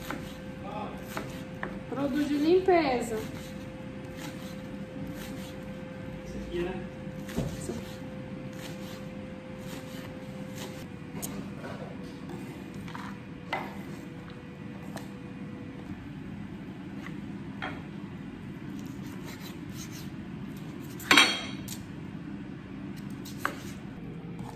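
A knife chops on a wooden cutting board.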